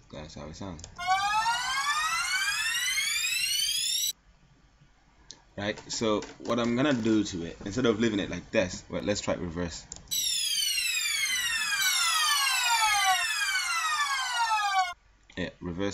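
A synth sound with rapidly sweeping tones plays loudly.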